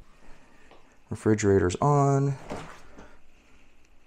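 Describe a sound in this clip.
A refrigerator door opens.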